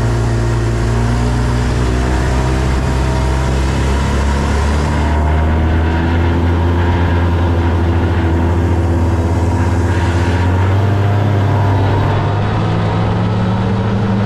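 A snowmobile engine drones loudly up close, its pitch rising and falling.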